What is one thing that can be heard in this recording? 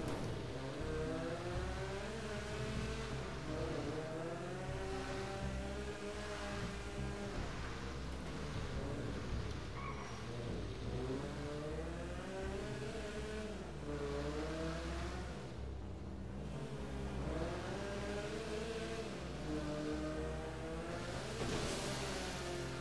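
Tyres splash through shallow water.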